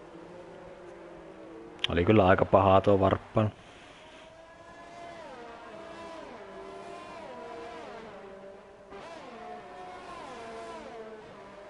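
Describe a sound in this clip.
A racing car engine whines at high revs, rising and dropping as it shifts gears.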